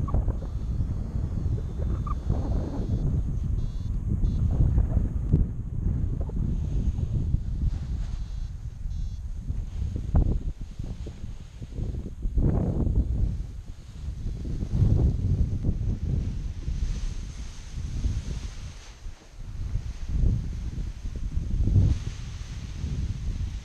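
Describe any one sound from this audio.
Wind gusts roar across the microphone outdoors.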